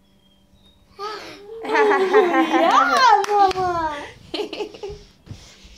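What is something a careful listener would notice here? A young girl sings and squeals loudly and close by.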